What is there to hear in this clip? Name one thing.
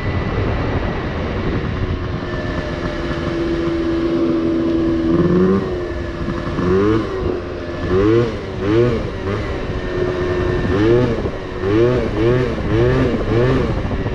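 A small motorbike engine hums and revs up and down.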